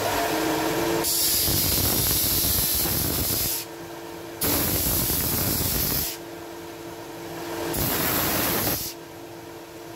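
Wood grinds against a sanding belt in loud rasping bursts.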